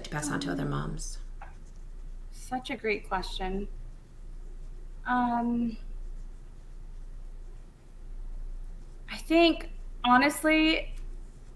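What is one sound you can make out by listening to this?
A woman speaks calmly through an online call, in short phrases with pauses.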